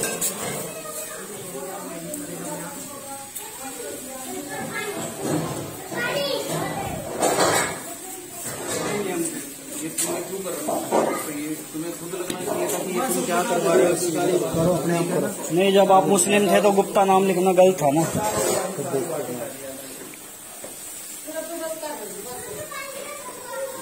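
Several men talk loudly and with agitation close by.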